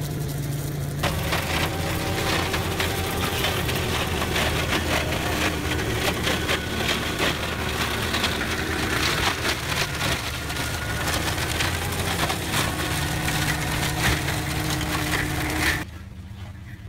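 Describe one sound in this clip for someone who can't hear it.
A flail mower shreds branches with a loud rattling roar.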